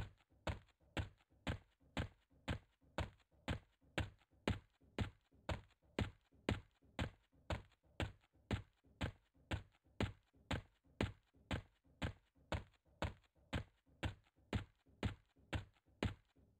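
Footsteps thud steadily on hard ground at a brisk walking pace.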